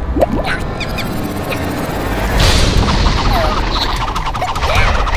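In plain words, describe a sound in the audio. A small cartoon creature squeaks and babbles in a high voice.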